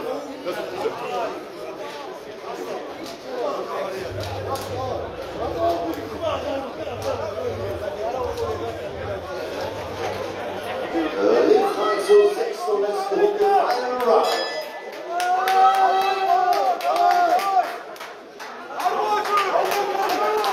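A crowd of men and women talks and shouts loudly all around in a large echoing hall.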